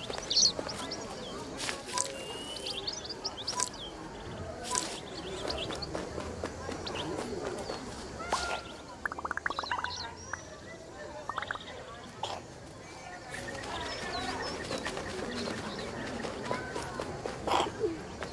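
Small birds chirp.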